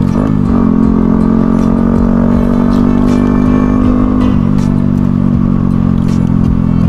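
A motorcycle engine hums steadily up close, shifting pitch slightly.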